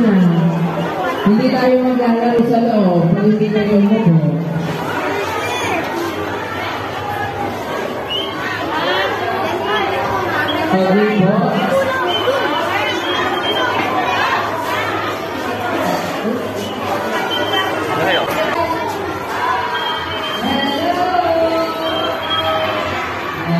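A crowd of people chatters in a busy indoor hall.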